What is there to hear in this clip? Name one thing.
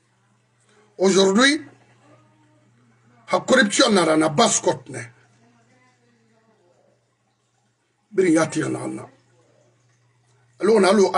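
A middle-aged man speaks with animation close to a microphone, in short bursts with pauses.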